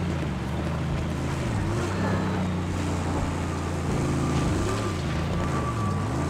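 Tyres crunch over loose gravel and sand.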